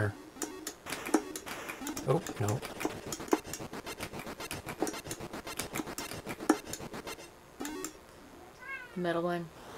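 Electronic game sounds bleep and click in quick bursts.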